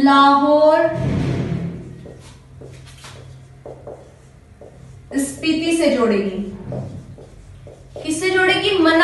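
A woman speaks clearly and with animation, close by.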